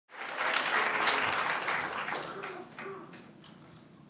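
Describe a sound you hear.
An audience applauds in a large hall, then the clapping dies away.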